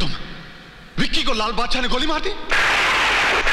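A man speaks urgently into a phone.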